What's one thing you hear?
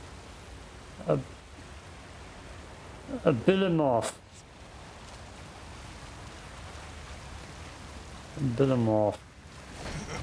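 A young man talks with animation into a microphone, in short bursts.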